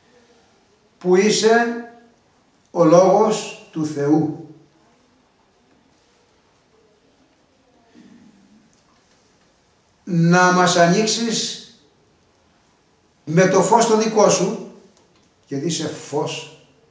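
An elderly man speaks close by in short, animated bursts with pauses between them.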